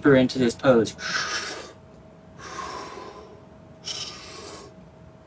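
A man breathes out slowly and deeply.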